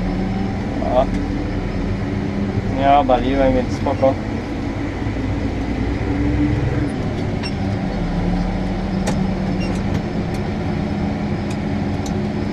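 A tractor engine drones steadily from inside the cab.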